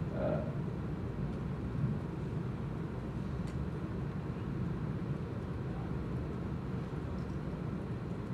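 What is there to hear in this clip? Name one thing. A man speaks steadily into a microphone through loudspeakers in a large room.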